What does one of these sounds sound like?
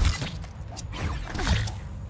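A jet of air whooshes as a figure glides.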